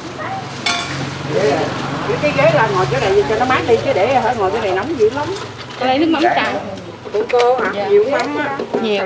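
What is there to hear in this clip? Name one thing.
A middle-aged woman talks nearby with animation.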